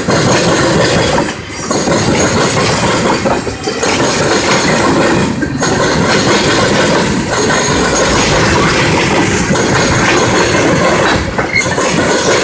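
Freight train cars rumble and clatter loudly past at close range.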